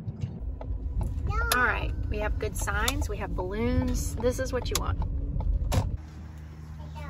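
A car engine hums low and steady from inside a moving car.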